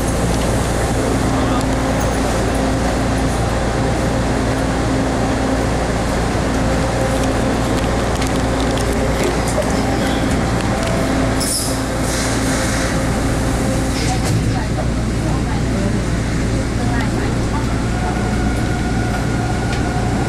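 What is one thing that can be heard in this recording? A subway train rumbles steadily as it rolls along a platform.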